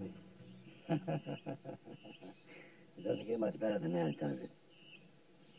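A man speaks with a strained, emotional voice.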